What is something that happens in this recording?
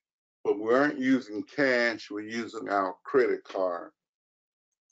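An older woman speaks calmly over an online call.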